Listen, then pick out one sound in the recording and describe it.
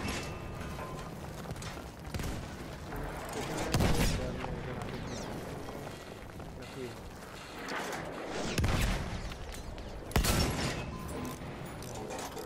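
Heavy guns fire with deep booming blasts.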